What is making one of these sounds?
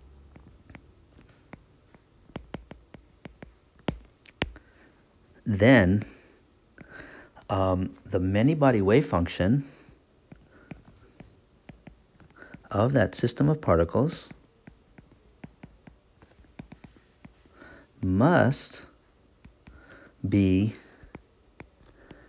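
A stylus taps and scratches lightly on a glass tablet.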